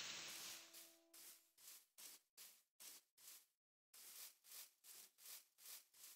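Footsteps pad rhythmically across grass.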